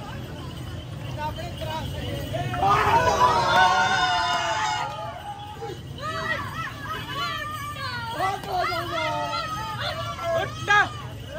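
Several men shout excitedly close by, outdoors.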